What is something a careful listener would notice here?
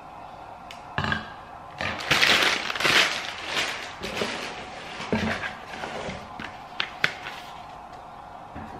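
Paper crinkles and rustles loudly as it is handled.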